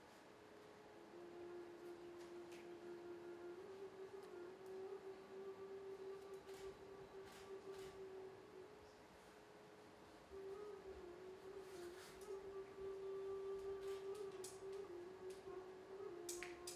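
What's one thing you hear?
A young woman sings long, held notes.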